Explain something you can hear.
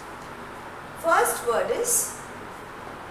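A woman speaks briefly and calmly nearby.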